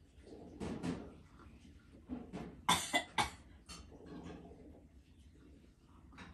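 An elderly woman sips tea from a cup.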